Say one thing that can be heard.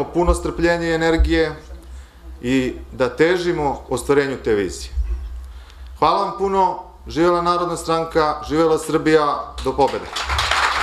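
A man speaks calmly and with emphasis into a microphone in a hall.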